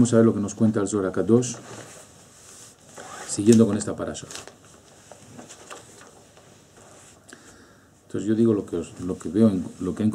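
A middle-aged man speaks calmly, close to the microphone, with pauses.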